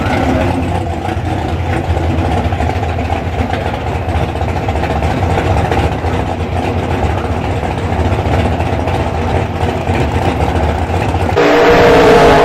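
A V8 drag car idles with a lumpy rumble.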